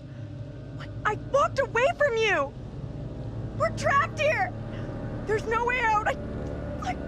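A young man shouts in distress, close by.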